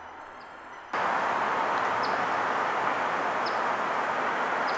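A man speaks close by, outdoors.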